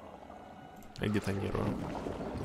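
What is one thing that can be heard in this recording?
A man speaks close into a microphone.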